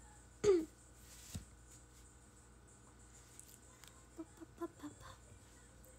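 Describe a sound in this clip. A young woman makes short, soft vocal sounds close to a microphone.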